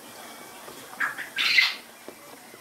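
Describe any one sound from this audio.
Caged birds chirp loudly in short bursts.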